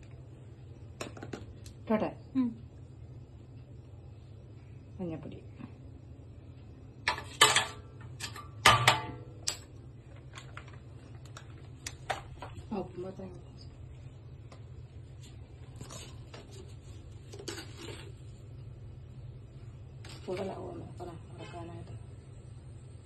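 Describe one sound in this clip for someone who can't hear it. A metal spoon clinks and scrapes against a metal bowl.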